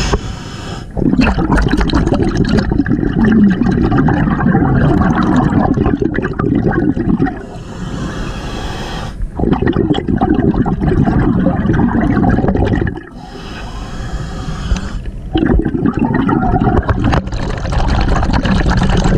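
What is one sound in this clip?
Bubbles from a diver's breath gurgle and rumble loudly underwater in long bursts.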